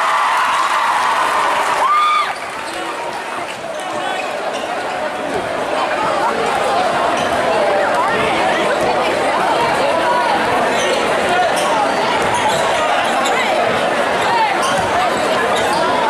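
A large crowd cheers and chatters loudly.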